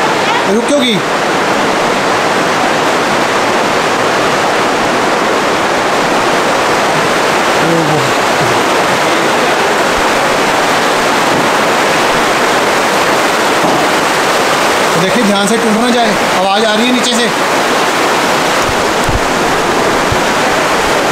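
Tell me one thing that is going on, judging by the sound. A river rushes loudly through a rocky gorge.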